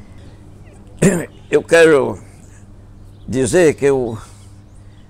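An elderly man speaks slowly and calmly, close to a microphone, with pauses.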